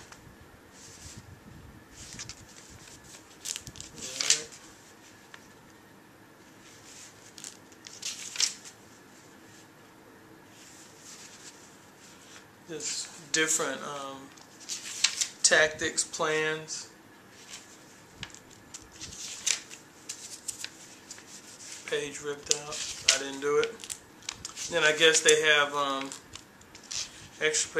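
Paper pages rustle as a small book is leafed through.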